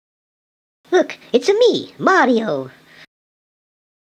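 A man speaks in a high, squeaky puppet voice.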